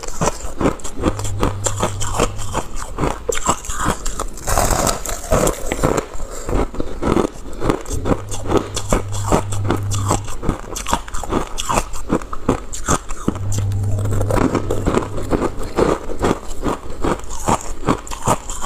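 Ice crunches and crackles as hands squeeze it.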